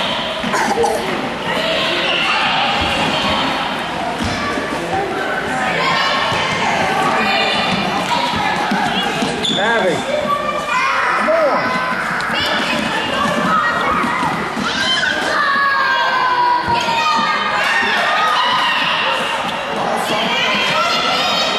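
Adults and children shout and cheer in an echoing gym.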